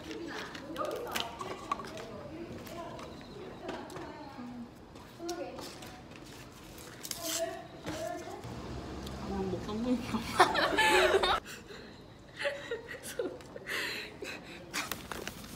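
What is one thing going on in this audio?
Young women chat and laugh casually close by.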